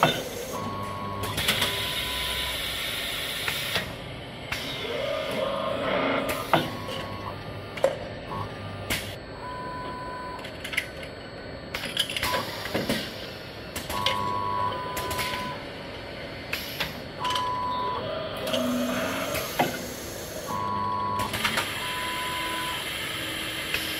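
A packaging machine hums and whirs steadily.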